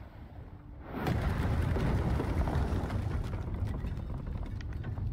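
A loud explosion booms and roars, then rumbles on.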